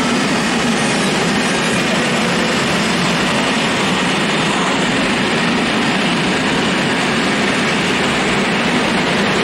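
A freight train rumbles and clatters past nearby on the tracks.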